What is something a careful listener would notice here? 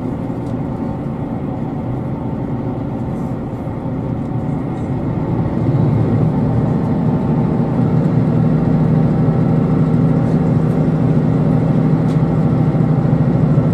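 A train rumbles steadily along the tracks, heard from inside a carriage, growing louder.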